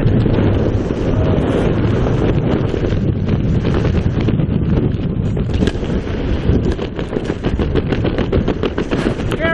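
Canopy lines and fabric flap and rattle in the wind.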